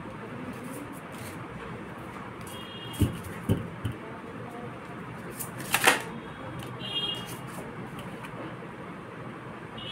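Cards shuffle and rustle in a young woman's hands.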